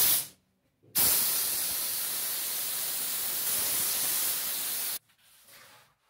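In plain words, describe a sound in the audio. A spray gun hisses as it sprays.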